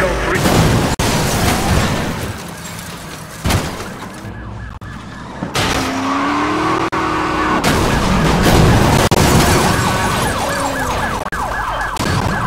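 Cars crash together with a loud metallic smash.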